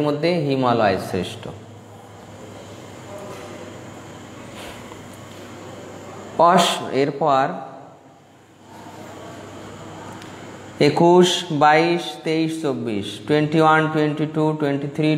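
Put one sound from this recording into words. A middle-aged man sings slowly into a close microphone, in short phrases with pauses.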